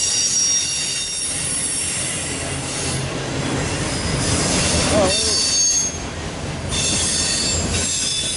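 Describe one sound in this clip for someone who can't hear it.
A loaded freight train of autorack cars rumbles past.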